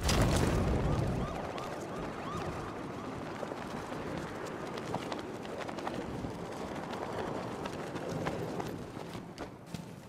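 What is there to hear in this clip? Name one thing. Wind rushes loudly past a gliding figure.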